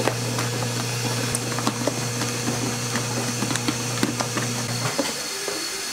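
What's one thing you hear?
A mixing machine hums steadily, then stops.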